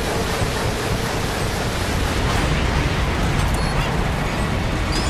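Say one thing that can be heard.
Rockets launch with a rapid series of roaring whooshes.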